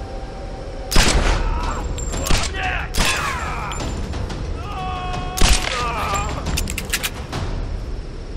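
Pistol shots ring out in quick bursts.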